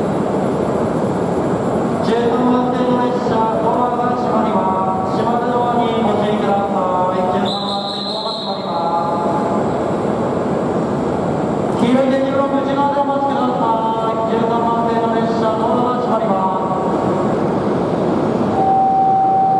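A train rolls slowly past with a low, steady rumble.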